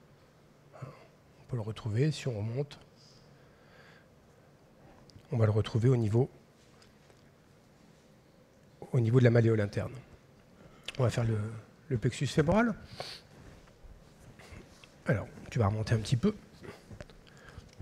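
A man speaks calmly through a microphone in short phrases.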